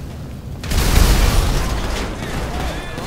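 An explosion booms loudly and fire roars.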